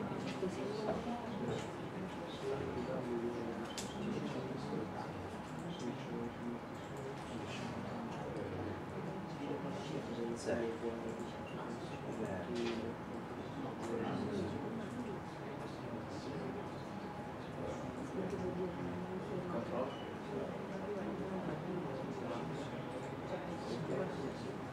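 A man speaks calmly, heard from a distance through a room microphone.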